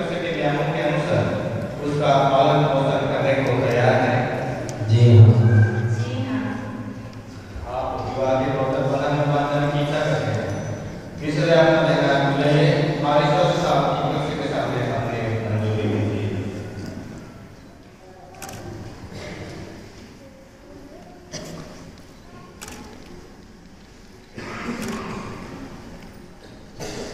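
A man speaks steadily through a loudspeaker in an echoing hall.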